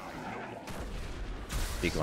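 An explosion booms in a game.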